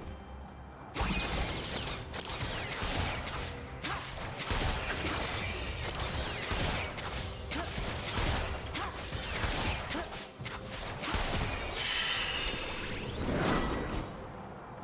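Fighting sounds clash, zap and crackle rapidly.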